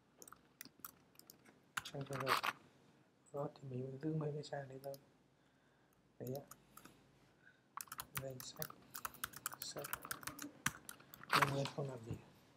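Computer keys click in quick bursts of typing.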